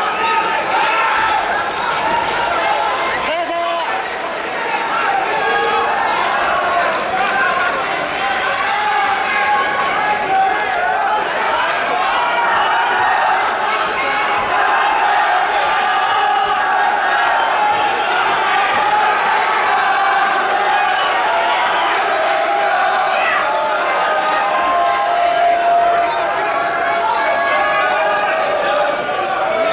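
A crowd chatters and calls out steadily in a large echoing hall.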